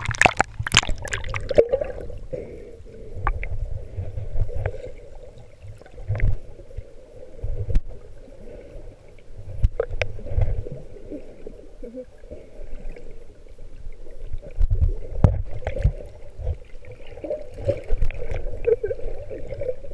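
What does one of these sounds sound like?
Water swishes and gurgles underwater, heard up close and muffled.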